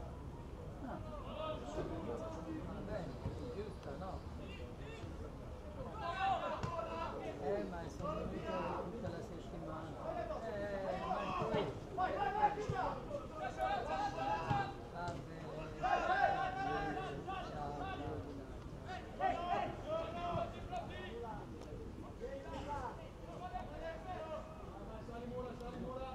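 Young men shout to each other across an open pitch.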